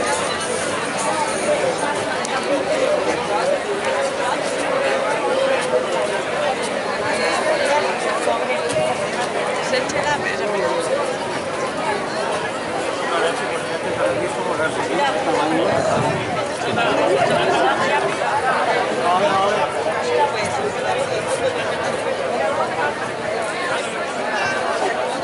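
A large crowd of men and women chatters outdoors.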